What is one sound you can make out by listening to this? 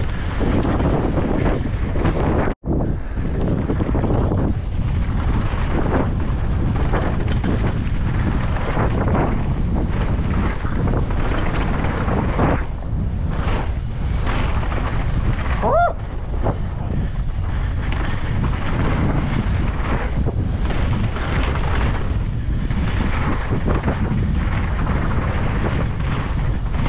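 Wind rushes loudly past a fast-moving rider.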